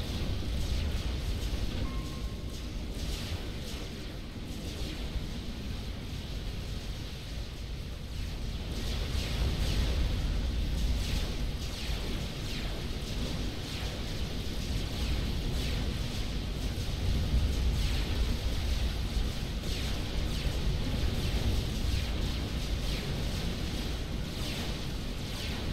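Laser weapons fire in rapid bursts during a battle.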